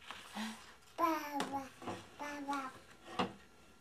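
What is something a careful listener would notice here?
A young child babbles and chatters close by.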